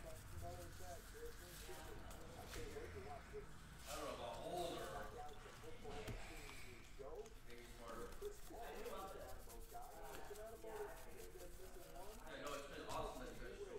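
Trading cards flick and rustle as they are shuffled by hand.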